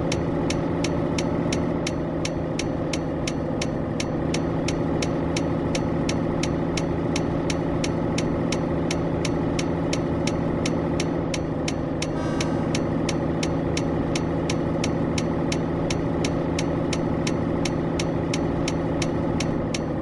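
A turn signal ticks quickly and evenly.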